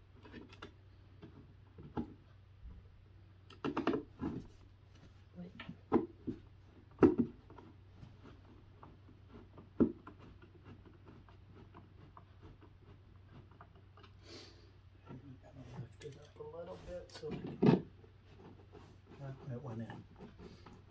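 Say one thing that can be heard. Wooden panels knock and tap together.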